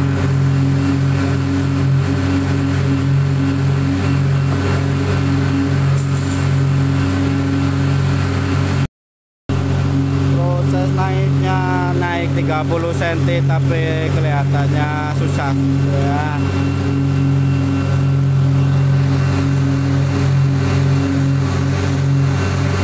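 A heavy diesel engine drones steadily close by.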